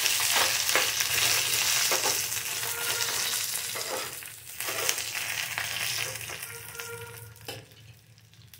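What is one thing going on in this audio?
Food sizzles loudly in hot oil in a pan.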